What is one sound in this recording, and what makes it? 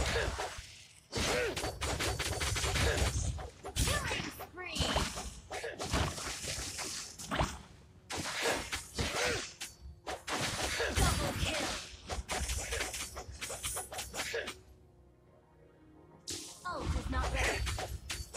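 Magical blasts and weapon strikes clash and burst in quick succession.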